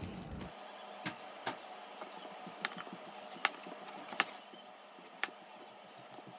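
A knife cuts through watermelon rind with crisp thuds against a cutting board.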